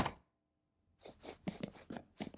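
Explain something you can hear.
Footsteps tap on a floor indoors.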